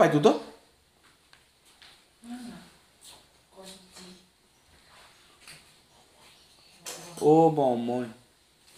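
A middle-aged man speaks calmly in short phrases, close by, with pauses between them.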